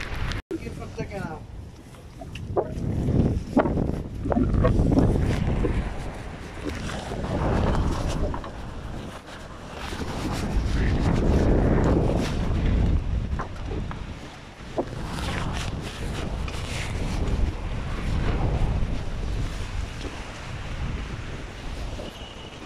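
Footsteps thud and clank on a wet metal deck.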